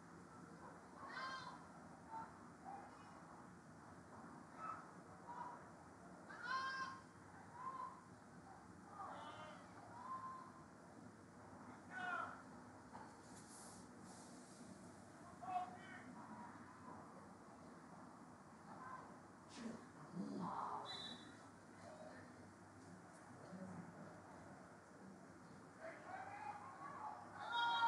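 Young women shout to each other across an open field, far off.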